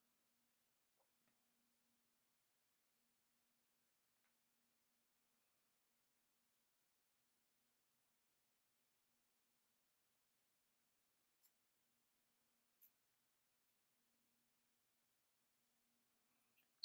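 Thin wire clicks and ticks softly as fingers bend and twist it.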